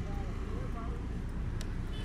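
Traffic rumbles past on a road.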